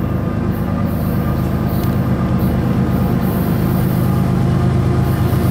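A train engine rumbles in the distance and grows slowly louder as it approaches.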